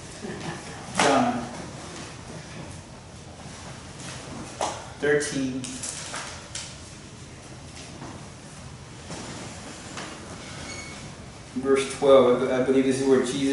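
A man speaks calmly nearby, in short bursts between pauses.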